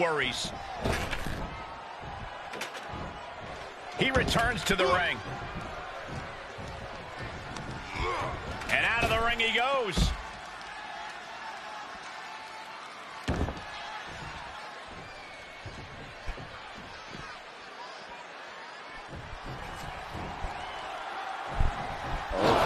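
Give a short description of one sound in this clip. Heavy bodies thud onto a wrestling ring.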